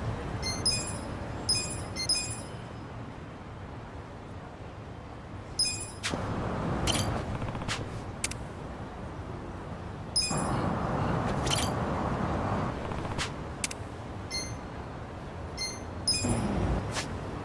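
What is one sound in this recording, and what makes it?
Short electronic menu chimes beep several times.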